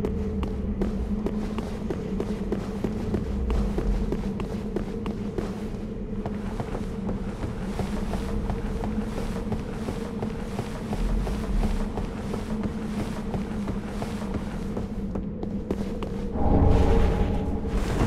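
Armoured footsteps clank steadily on stone.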